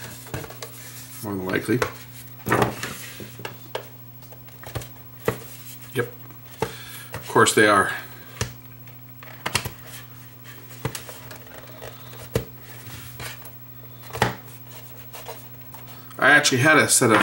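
Plastic parts click and knock as a small device is handled.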